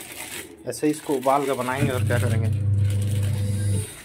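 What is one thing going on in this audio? Snack packets crinkle as they are picked up.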